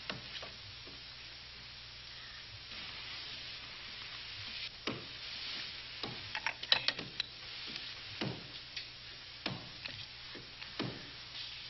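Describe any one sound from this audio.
Bed sheets rustle as someone shifts restlessly in bed.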